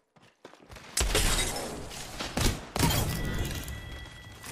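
Gunfire bursts in quick shots.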